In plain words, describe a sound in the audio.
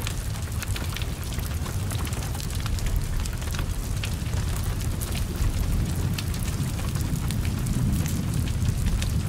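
Flames roar steadily from a burning car.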